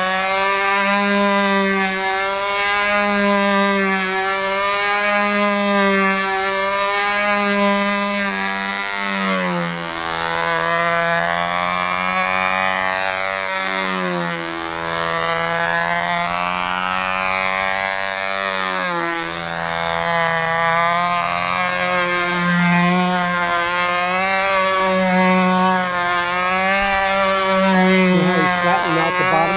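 A control-line model plane's small glow engine screams, its pitch rising and falling as the plane circles.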